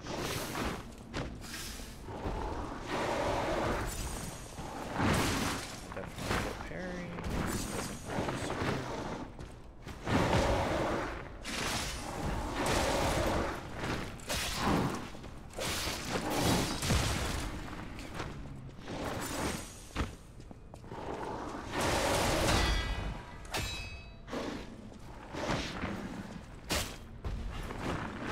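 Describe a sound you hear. Heavy blows thud and crash during a fight.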